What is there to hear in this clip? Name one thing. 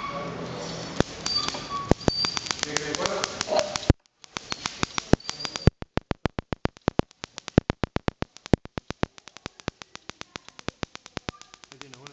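Electric sparks snap and crackle rapidly between metal balls.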